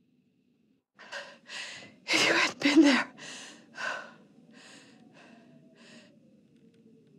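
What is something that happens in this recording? A young woman speaks in a shaky, emotional voice close by.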